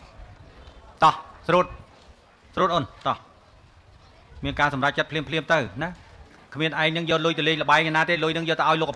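A man speaks loudly through a microphone and loudspeaker, in short bursts.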